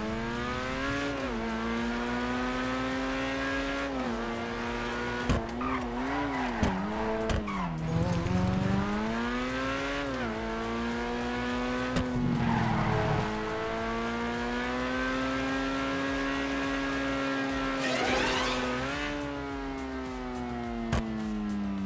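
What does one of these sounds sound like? A sports car engine roars steadily, its pitch rising and falling as it shifts gears.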